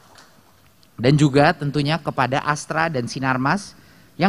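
A man reads out a speech clearly through a microphone.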